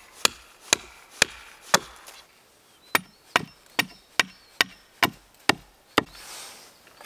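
A hatchet chops into wood with sharp, steady knocks.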